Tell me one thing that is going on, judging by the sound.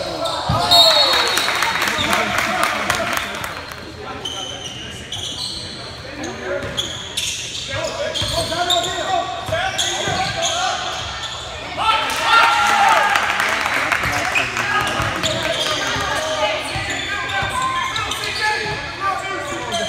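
Young men shout and call out across an echoing gym.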